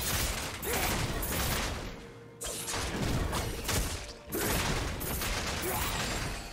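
Fantasy combat sound effects whoosh and clash in quick bursts.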